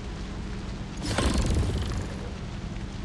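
A weapon swings with a loud whoosh and clang.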